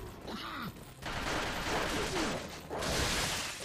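An explosion bursts with a loud roar.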